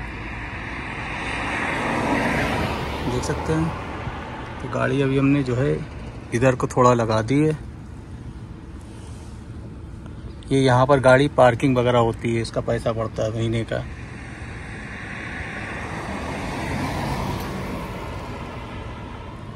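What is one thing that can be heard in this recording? Tyres hum steadily on the road as a car drives along.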